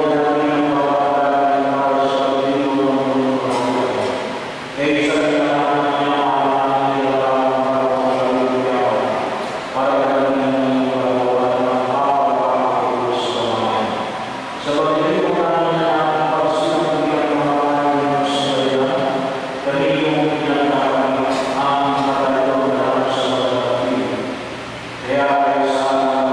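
A middle-aged man sings a chant through a microphone in a large echoing hall, pausing between phrases.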